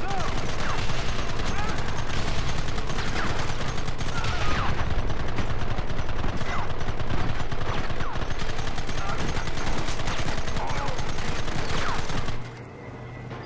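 Rapid gunfire cracks and booms.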